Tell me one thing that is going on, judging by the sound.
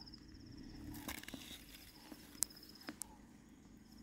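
Leaves rustle as a hand brushes through low plants.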